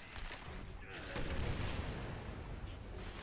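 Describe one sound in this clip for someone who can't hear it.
A gun fires in a short burst.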